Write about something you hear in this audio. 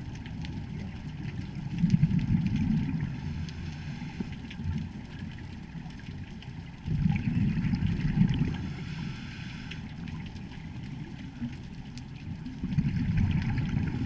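Water swishes and rumbles in low surges underwater.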